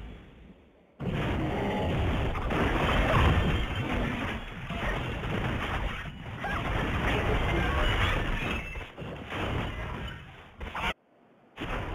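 Magic blasts and weapon hits clash in a fast, busy fight.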